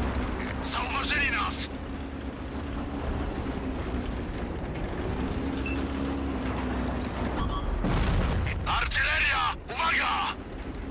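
A light tank's engine rumbles low.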